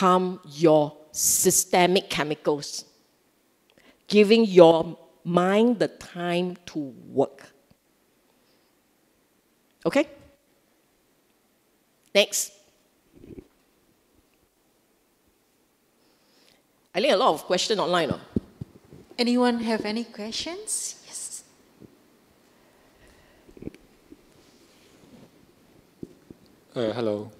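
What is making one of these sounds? A middle-aged woman speaks calmly into a microphone, in bursts with long pauses.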